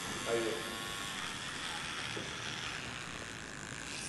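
Electric hair clippers buzz while shaving hair.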